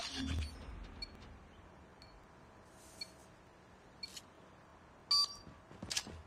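Short electronic beeps tick off a countdown, one each second.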